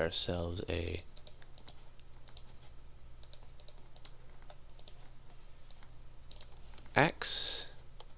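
Soft clicks sound as items are moved about in a game menu.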